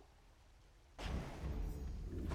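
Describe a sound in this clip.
A shimmering magical burst rings out from a game.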